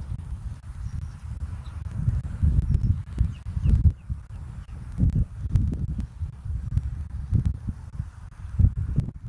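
Wind buffets a microphone outdoors with low rumbling gusts.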